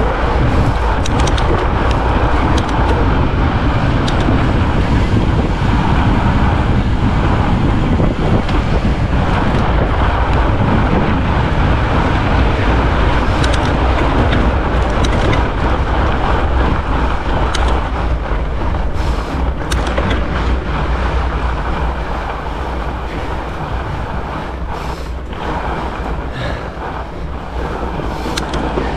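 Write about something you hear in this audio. Bike tyres crunch over packed snow.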